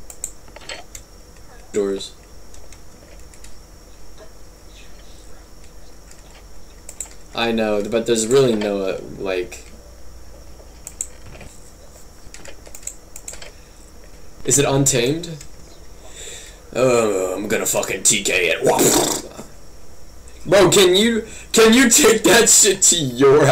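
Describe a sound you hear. Keyboard keys clack.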